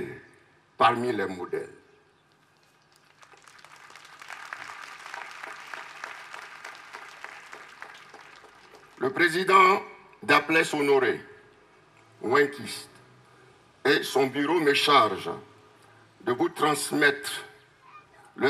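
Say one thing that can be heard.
A man speaks loudly and emphatically through a loudspeaker microphone, in short bursts with pauses.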